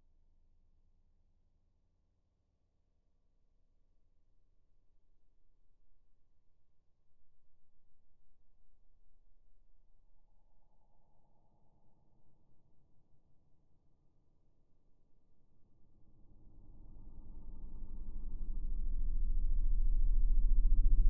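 A glowing gas tube hums low, growing steadily louder toward the end.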